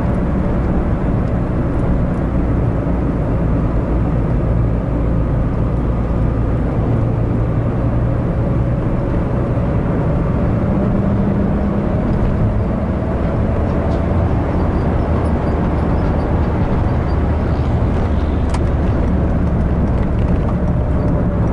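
Road noise rumbles steadily under the car's tyres.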